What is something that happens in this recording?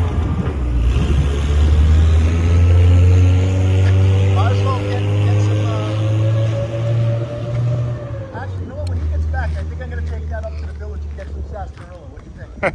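An armoured vehicle's engine rumbles as it drives past.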